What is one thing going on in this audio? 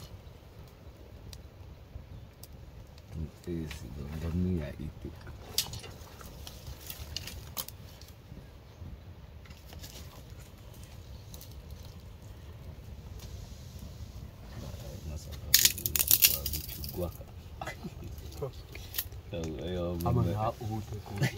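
A small wood fire crackles softly.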